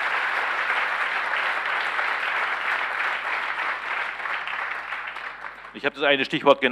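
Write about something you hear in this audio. An audience applauds in a large hall, slowly dying down.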